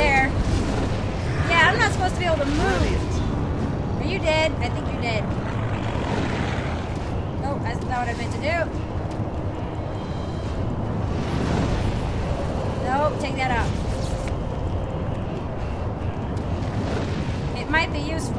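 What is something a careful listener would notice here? A fire roars with a low, steady rumble.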